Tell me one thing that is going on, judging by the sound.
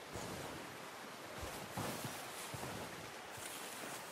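Snow-laden branches rustle.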